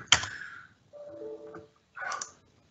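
A short computer error chime sounds.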